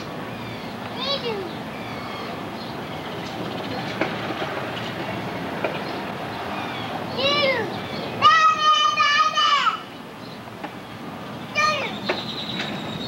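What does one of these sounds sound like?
Young children shout and squeal nearby.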